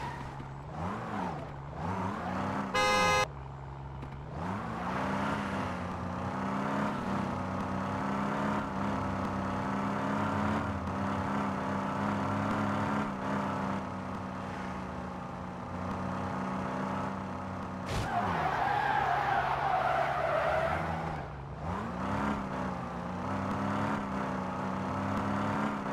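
A car engine revs up and roars as the car speeds up.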